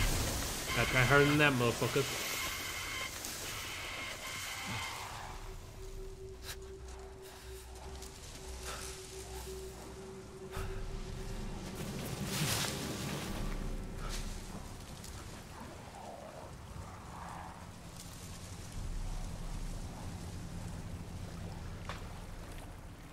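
Footsteps crunch slowly through snow.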